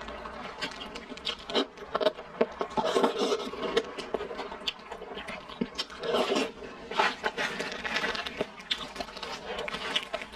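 A young woman chews and smacks her lips loudly and close to a microphone.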